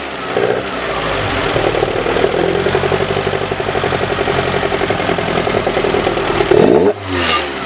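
A car engine runs steadily at a higher speed.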